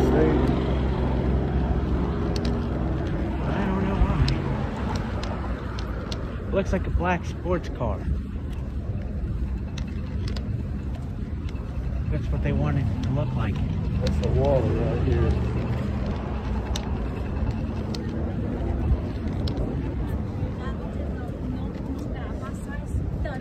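Footsteps tap on a pavement at a walking pace.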